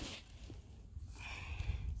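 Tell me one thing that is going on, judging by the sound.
Dry soil rustles and crumbles under a hand.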